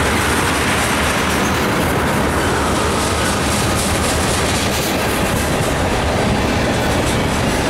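A freight train rumbles past close by with a loud, steady roar.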